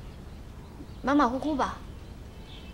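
A young woman answers briefly in a flat voice, close by.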